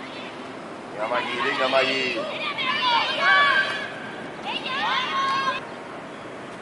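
Young women shout to each other across an open pitch outdoors.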